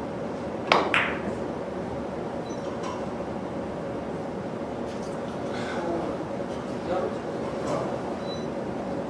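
Billiard balls clack against each other on the table.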